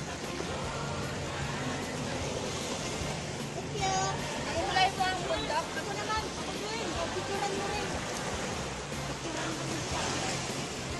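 Small waves lap against a rocky shore.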